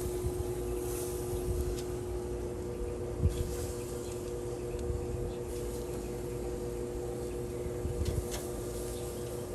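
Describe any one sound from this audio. Lobster tails knock and scrape against a grill grate as they are turned.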